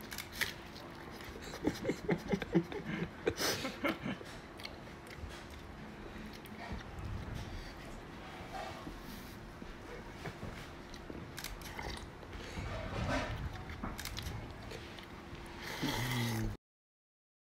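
A man slurps broth from a bowl.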